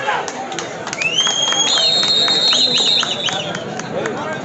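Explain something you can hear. A referee's whistle blows in sharp shrill blasts.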